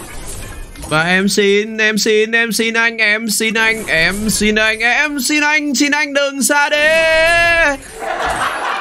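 A young man exclaims loudly in a drawn-out, singing voice.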